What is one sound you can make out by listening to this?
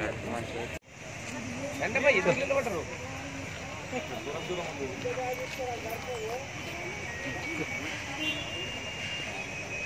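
A crowd of men and women talk over one another outdoors.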